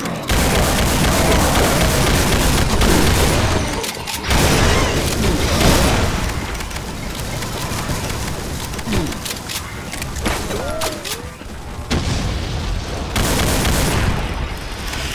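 A rapid-fire gun fires in bursts.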